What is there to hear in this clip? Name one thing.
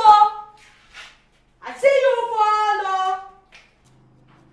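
A young woman sings with emotion close by.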